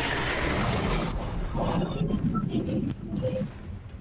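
A loud rushing whoosh sweeps past.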